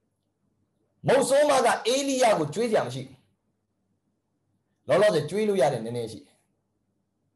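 A young man talks calmly and clearly into a close microphone.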